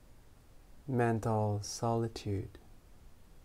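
A man speaks a few words calmly in a deep voice, close by.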